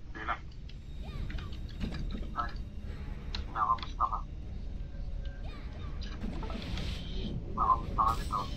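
Magic spells whoosh and chime in short bursts.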